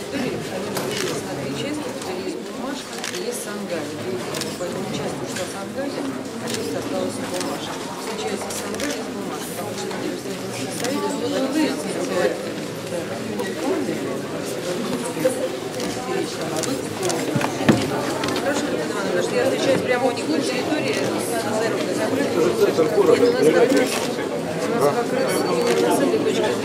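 A woman talks calmly up close.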